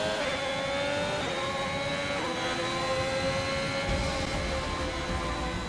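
A racing car engine screams at high revs, shifting gears as it speeds up.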